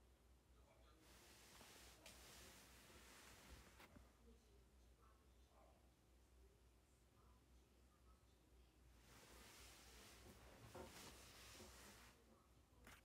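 A sleeping person breathes slowly and heavily close by.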